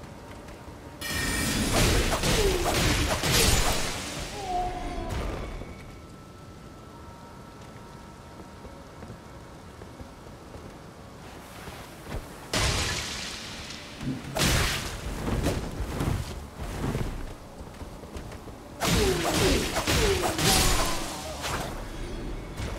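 A blood spell bursts with a whooshing crackle.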